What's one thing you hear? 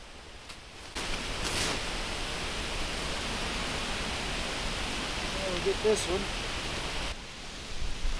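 A plastic tarp rustles as it is dragged through grass.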